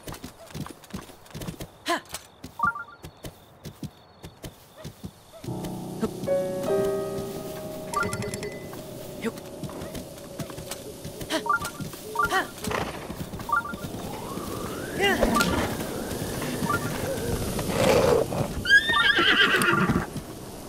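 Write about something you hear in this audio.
A horse's hooves pound the ground at a gallop.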